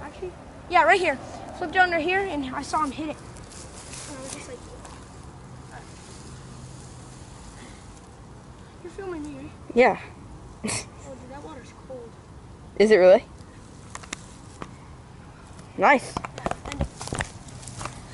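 A boy talks excitedly, close by.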